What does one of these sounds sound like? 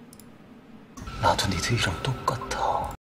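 A man speaks in a low, intense voice.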